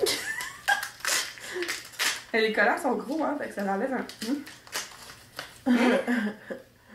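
Paper crinkles and rustles in a woman's hands.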